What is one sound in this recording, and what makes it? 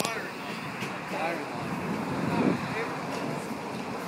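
A man talks outdoors.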